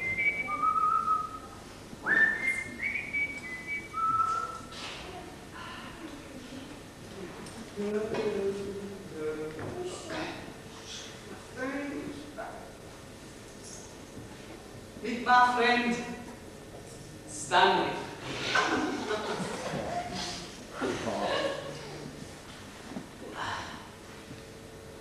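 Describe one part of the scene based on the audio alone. A young man speaks with expression on a stage.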